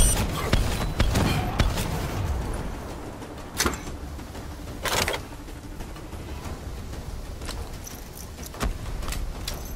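Guns fire in short bursts with loud bangs.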